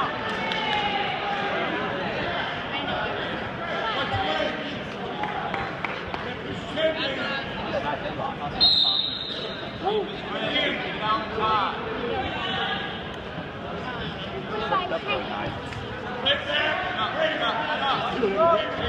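A crowd of people talk and call out in a large echoing gym.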